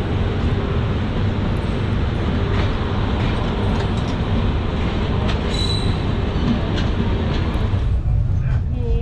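A train rushes along loudly, with a roaring rush of air close by.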